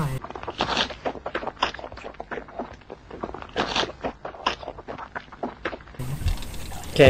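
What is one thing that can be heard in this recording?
A man makes puffing, smacking mouth noises.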